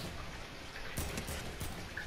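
Gunshots fire in quick short bursts.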